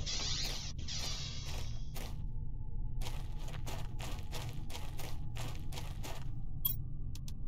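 Footsteps crunch on dry, hard ground.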